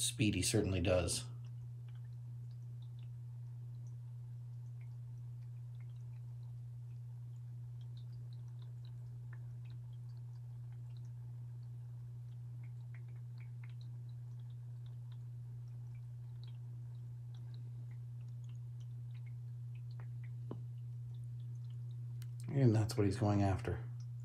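Small bubbles fizz softly in water.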